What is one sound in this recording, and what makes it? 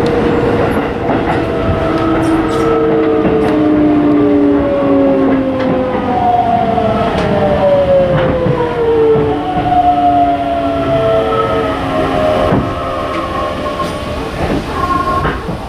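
Train brakes squeal with falling pitch as the train comes to a stop.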